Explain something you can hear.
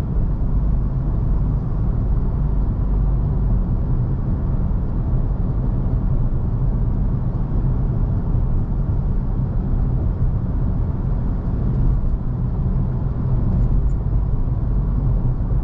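A car's engine hums steadily as it drives along a road.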